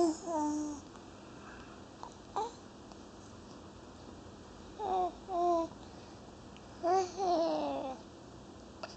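A baby coos and squeals close by.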